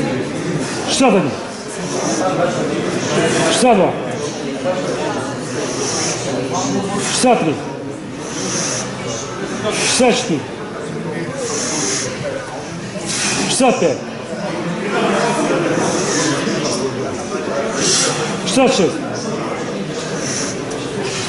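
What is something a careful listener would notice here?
Men talk quietly in the background of an echoing hall.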